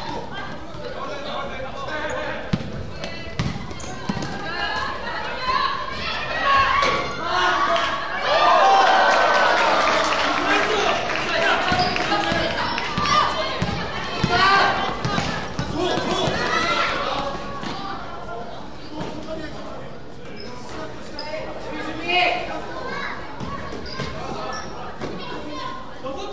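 A crowd of onlookers cheers and shouts.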